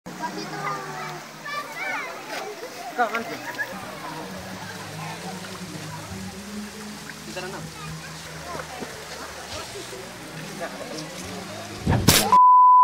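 Water splashes and laps as people swim.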